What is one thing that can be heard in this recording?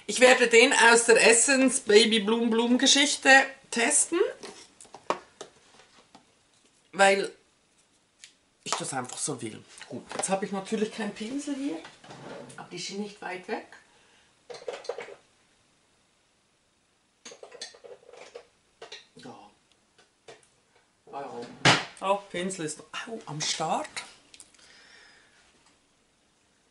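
A woman talks calmly and close by, now and then pausing.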